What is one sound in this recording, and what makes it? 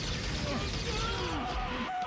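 A jet engine roars overhead.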